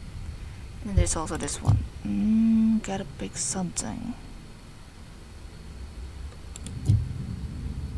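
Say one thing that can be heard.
A game menu makes a short click as the selection changes.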